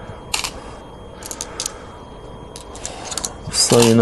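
A game stone clicks onto a wooden board.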